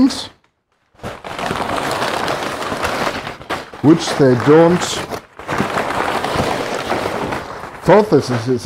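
Clothing rustles close by as a man moves about.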